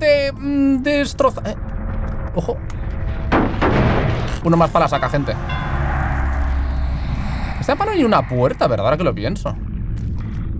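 A man talks through a microphone with animation.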